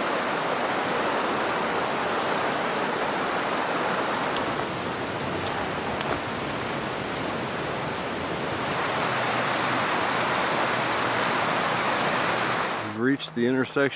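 A stream rushes and babbles over rocks.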